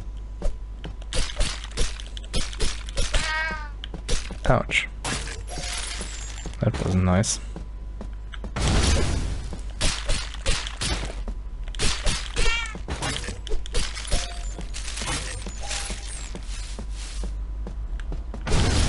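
Video game combat effects clash and thud in quick bursts.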